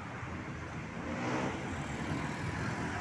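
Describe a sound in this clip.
A motorbike engine passes by.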